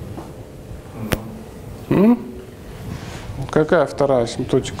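A second young man speaks calmly and thoughtfully.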